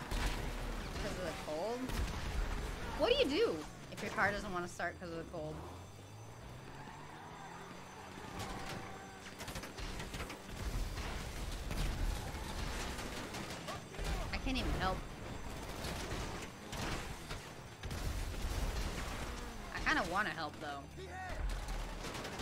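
A young woman talks with animation into a microphone.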